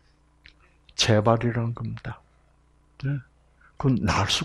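An elderly man speaks calmly through a microphone, in short bursts.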